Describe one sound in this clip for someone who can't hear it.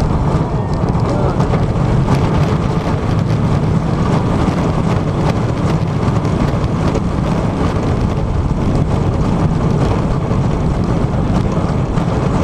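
A roller coaster rumbles and clatters along its track.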